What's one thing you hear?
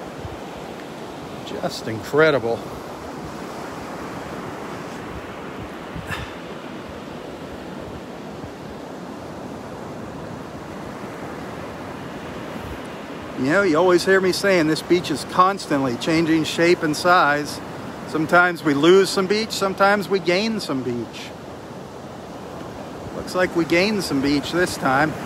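Small waves wash gently onto a sandy shore in the distance.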